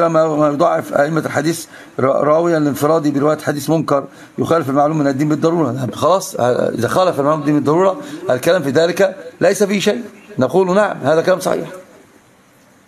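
An elderly man speaks calmly and steadily into a close microphone.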